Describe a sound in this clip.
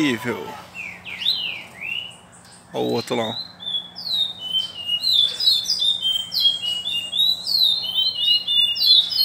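A double-collared seedeater sings quick whistled phrases.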